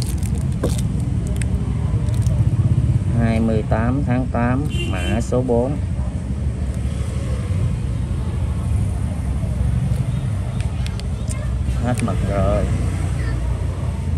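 Small plastic parts click and tap in hands.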